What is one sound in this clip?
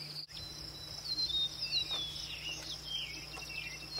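A hammer knocks on a wooden roof.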